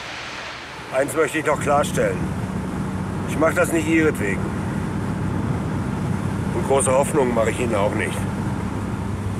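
An older man speaks firmly close by.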